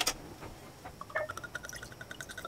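Wine glugs as it pours into a glass jar.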